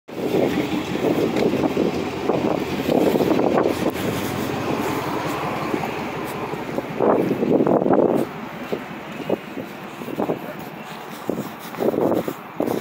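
Shoes step on asphalt.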